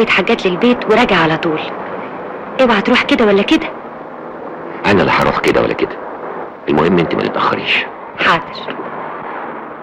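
A man speaks tensely and close by.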